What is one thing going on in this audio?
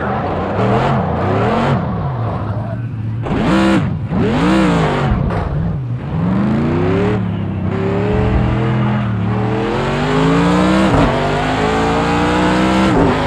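A racing car engine roars, rising and falling in pitch as it shifts gears and brakes.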